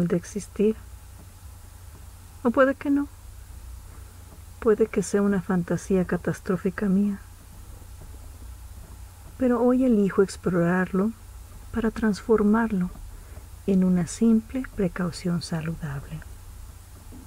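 A young woman speaks with feeling, in short bursts.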